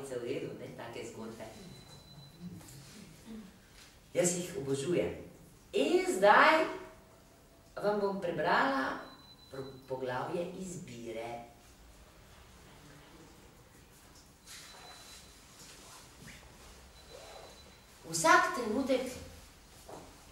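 A middle-aged woman reads aloud calmly into a microphone.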